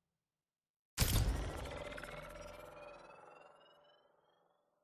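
A bright musical chime rings out and slowly fades.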